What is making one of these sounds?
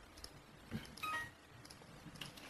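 A short computer alert chime sounds.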